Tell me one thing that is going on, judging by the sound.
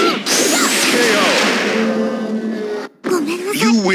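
A heavy blow lands with a crackling burst of energy.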